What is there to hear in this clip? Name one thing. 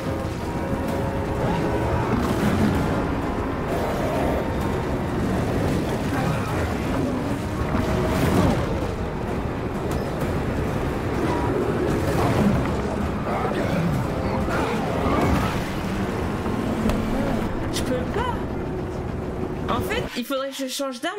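A creature growls and snarls amid loud, rumbling game noise.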